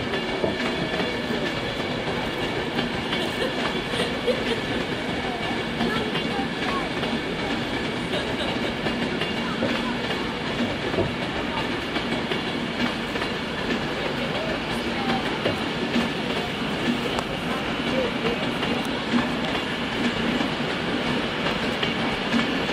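An electric high-speed passenger train rolls slowly past on the rails.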